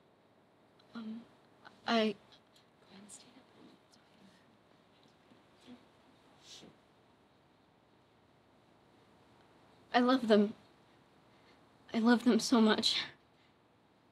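A young girl speaks in short, upset bursts.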